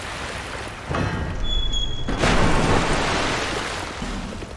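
An iron gate rattles and grinds open.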